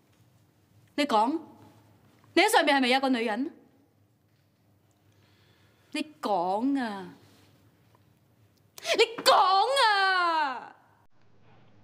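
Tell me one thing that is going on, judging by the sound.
A woman speaks sharply and with animation close by.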